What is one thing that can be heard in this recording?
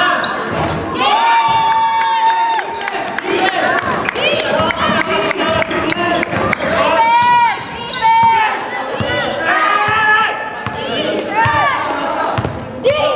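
Sneakers squeak sharply on a hard court floor in an echoing hall.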